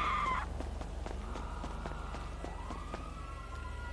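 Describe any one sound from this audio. A character's footsteps patter quickly across a hard surface.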